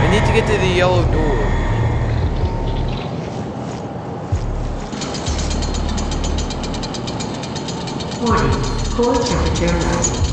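A young man talks casually into a nearby microphone.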